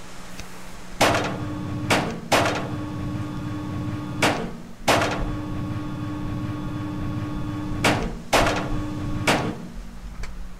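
A metal lift hums and rattles as it moves, with loud clanks.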